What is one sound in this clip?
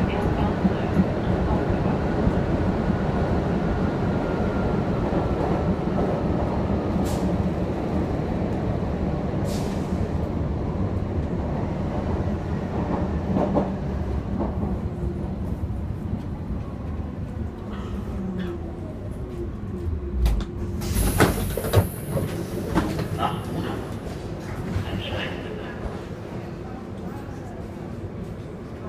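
A subway train rumbles and rattles along the track.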